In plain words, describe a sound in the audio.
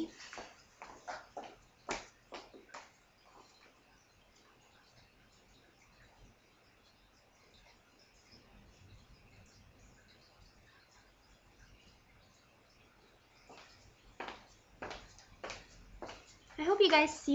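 High heels click on a hard floor.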